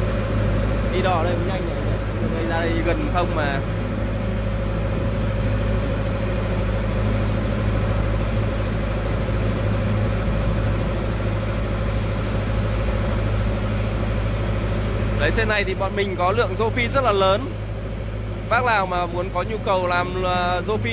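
A man speaks nearby in short bursts.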